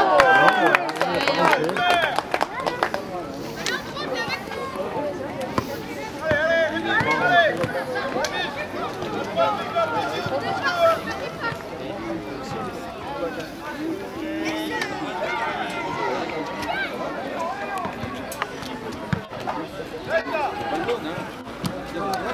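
Young players shout and call out to each other across an open field.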